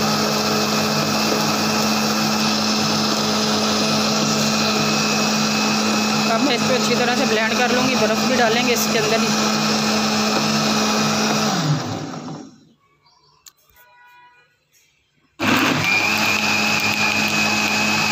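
A blender motor whirs loudly, stops briefly and starts again.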